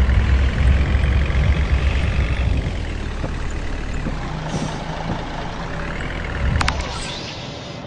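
A bus engine rumbles low as the bus drives slowly and comes to a stop.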